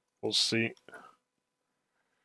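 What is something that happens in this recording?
A man speaks briefly into a microphone, close up.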